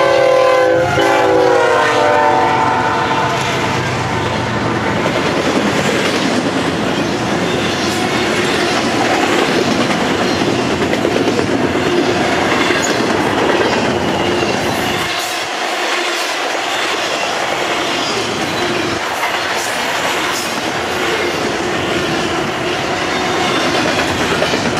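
Train wheels clatter and rattle steadily over the rails.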